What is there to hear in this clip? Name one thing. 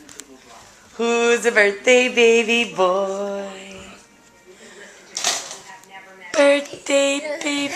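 A baby babbles and squeals loudly, close by.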